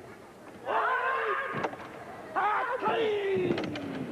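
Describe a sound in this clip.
Wooden boards crack sharply as a kick breaks them.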